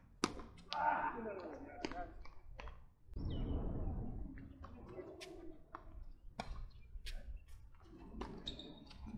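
Tennis balls pop sharply off rackets in a rally outdoors.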